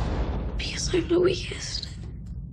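A young woman gasps in fear.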